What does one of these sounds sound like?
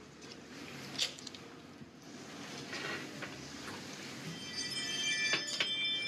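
Tea pours from a teapot into a cup.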